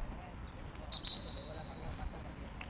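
A referee's whistle blows once, short and shrill.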